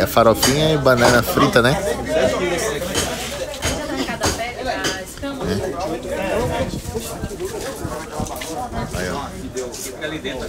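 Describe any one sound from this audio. Several men talk with animation close by.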